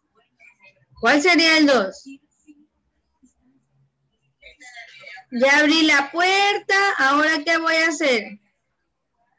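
A young child speaks loudly through an online call.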